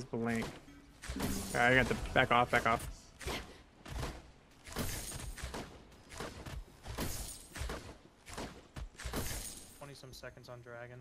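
Weapon strikes and magic blasts crash in quick bursts.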